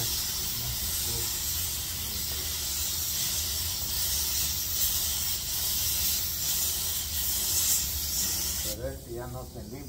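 A spray gun hisses steadily.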